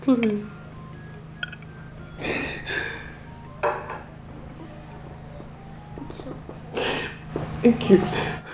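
A middle-aged woman sobs and wails close by.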